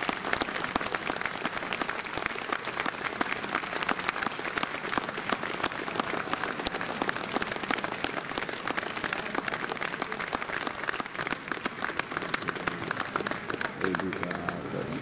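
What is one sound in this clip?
Applause rings out in a large hall.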